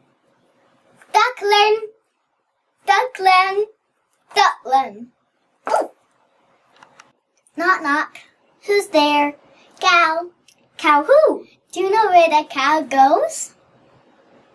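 A young person talks in playful, squeaky puppet voices close by.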